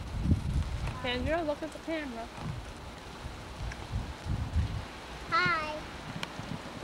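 A young child speaks in a high voice close by.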